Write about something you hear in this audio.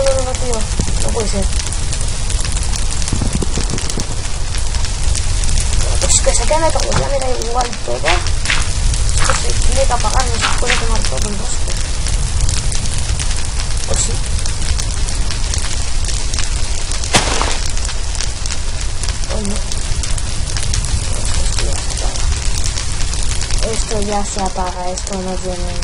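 Fire crackles steadily.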